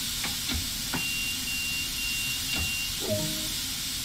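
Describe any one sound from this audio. A warning buzzer beeps in a train cab.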